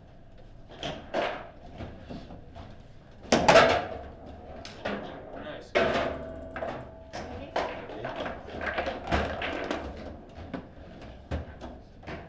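Metal rods rattle and clack as they are slid and spun.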